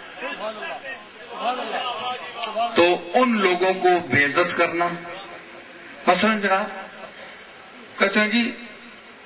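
A man speaks with animation into a microphone, heard through a loudspeaker in an echoing hall.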